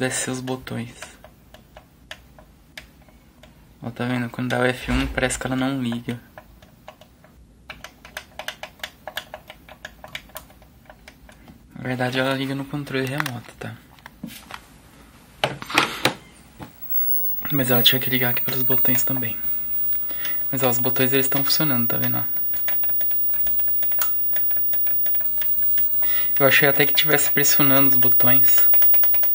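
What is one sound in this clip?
Buttons on a television click as a finger presses them.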